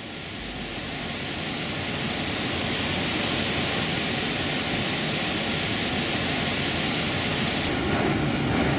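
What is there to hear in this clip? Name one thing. Water rushes steadily over a dam.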